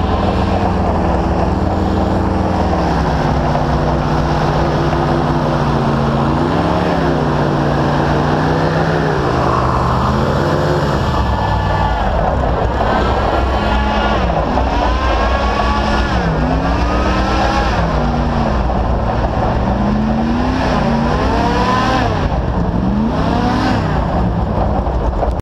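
An airboat engine roars loudly and steadily close by.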